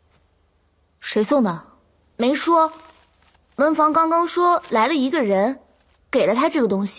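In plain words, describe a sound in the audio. Another young woman answers calmly, close by.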